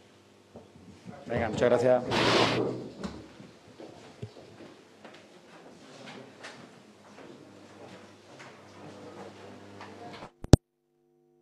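A crowd of people chatters and murmurs in a room.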